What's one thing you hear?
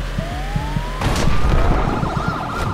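A vehicle explodes with a loud boom.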